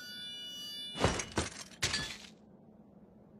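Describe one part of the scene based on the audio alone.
Armoured feet thud down on rocky ground.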